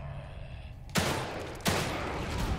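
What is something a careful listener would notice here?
A pistol fires two sharp shots.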